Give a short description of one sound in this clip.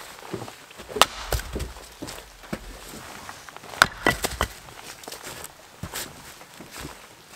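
An axe chops into a wooden log with sharp knocks.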